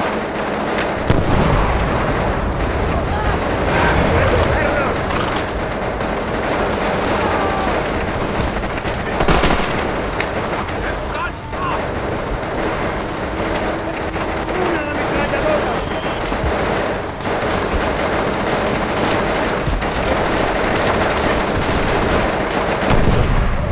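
A machine gun fires in rapid bursts.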